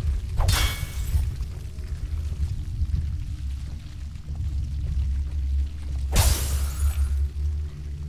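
Glass shatters loudly into pieces.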